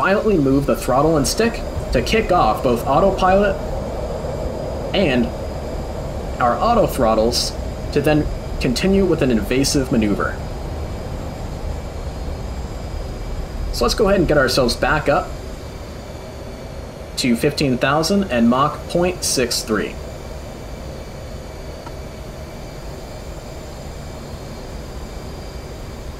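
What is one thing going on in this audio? A jet engine roars with a steady low rumble.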